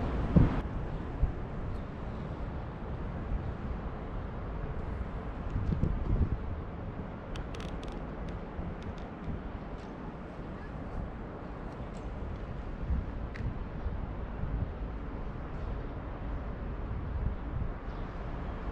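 Wind buffets the microphone outdoors in low, uneven gusts.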